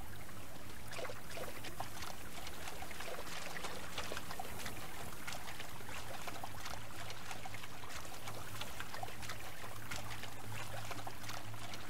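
A wolf splashes while swimming through water.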